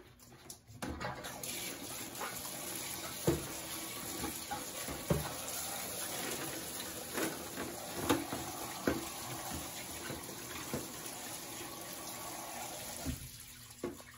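Water runs from a tap into a plastic bucket.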